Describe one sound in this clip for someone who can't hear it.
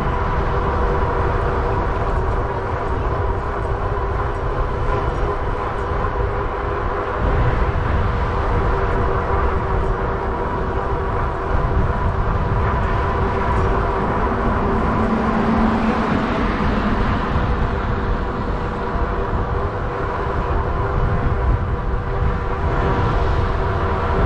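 Wind buffets the microphone in a steady low rumble.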